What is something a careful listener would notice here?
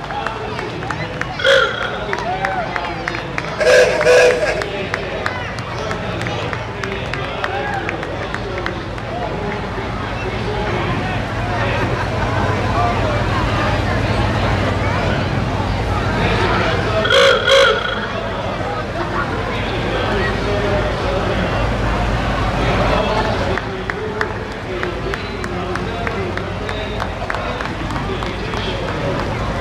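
A crowd chatters and murmurs outdoors along a street.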